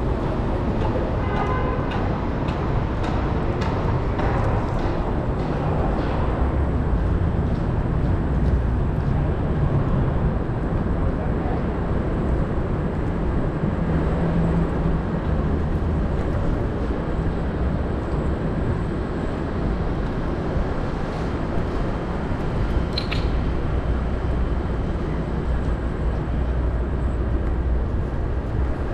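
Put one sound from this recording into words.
Bicycle tyres roll steadily over asphalt.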